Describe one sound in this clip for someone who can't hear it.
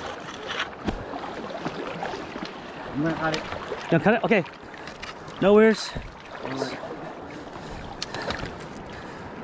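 River water rushes and laps steadily nearby.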